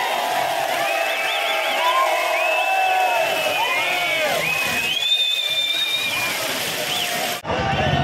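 Men in a crowd whistle loudly and shrilly.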